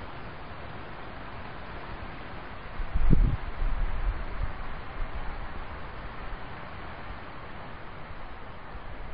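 A river rushes and splashes steadily outdoors.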